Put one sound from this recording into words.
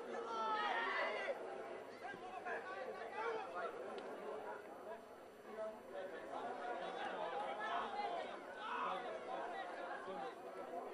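Men shout and call to each other across an open field outdoors.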